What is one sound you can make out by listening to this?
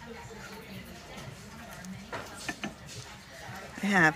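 A small ceramic jar clinks lightly as a hand picks it up off a shelf.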